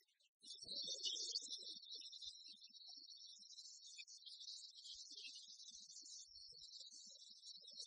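Rackets strike a shuttlecock back and forth.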